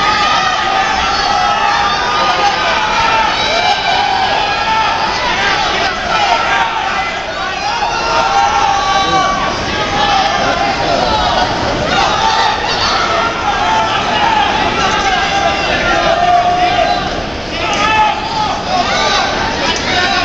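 A large crowd shouts and cheers loudly in an echoing arena.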